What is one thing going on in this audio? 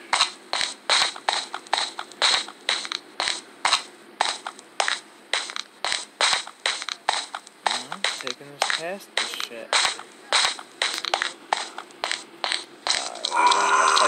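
Footsteps crunch steadily across gravel.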